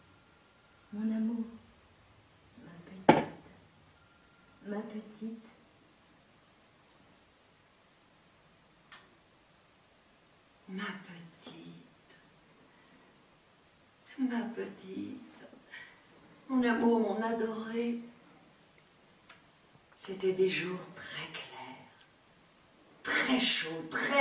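An older woman speaks warmly in short bursts, close by.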